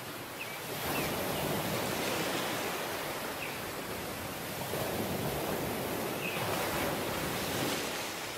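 Wind blows across the open beach.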